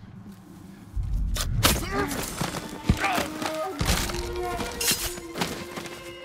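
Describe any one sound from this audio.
A sword slashes and strikes with sharp hits.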